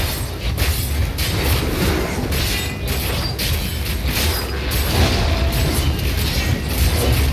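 Fiery spell blasts crackle and roar in quick bursts.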